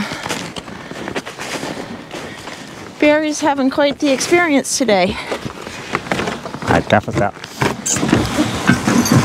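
Sled runners scrape and hiss over snow.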